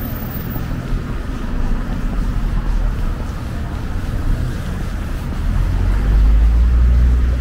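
Cars drive by on a street with a low, steady rumble.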